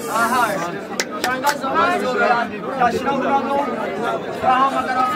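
A crowd of men and women sing together nearby.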